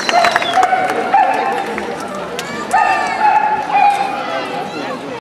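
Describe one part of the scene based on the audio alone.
A wind band plays a lively tune outdoors.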